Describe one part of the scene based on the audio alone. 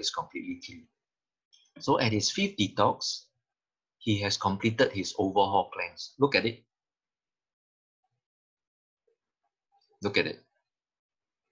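A man speaks calmly through a microphone in an online call, in short bursts with pauses.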